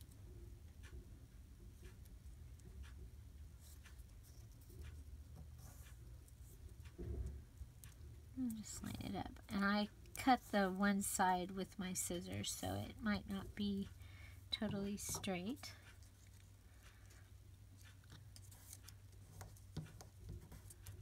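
Paper rustles softly as fingers press and smooth it.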